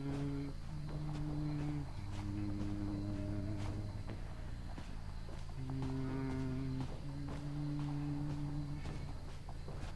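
Footsteps crunch steadily through grass and dirt.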